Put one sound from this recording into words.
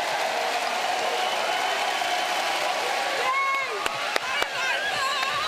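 A large crowd cheers and applauds in an echoing arena.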